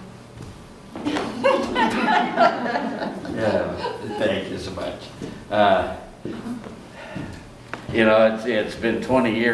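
An elderly man speaks calmly nearby.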